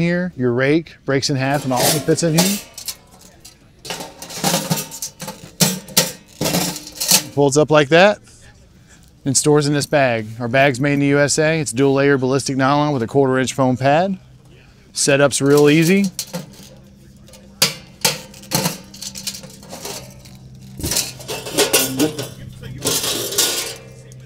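Metal parts clink and clatter as a man handles them.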